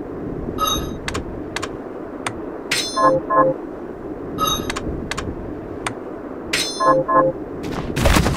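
Short electronic menu clicks and chimes sound as selections change.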